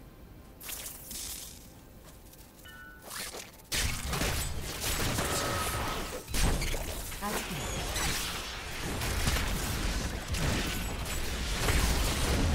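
Lightning spells crackle and zap in bursts.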